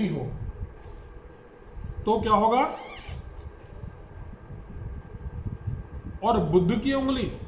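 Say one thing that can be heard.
An elderly man speaks calmly and deliberately, close by, with pauses between phrases.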